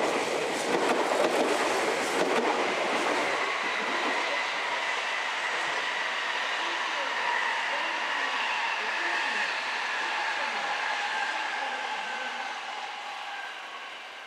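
Train wheels clatter and screech over the rails.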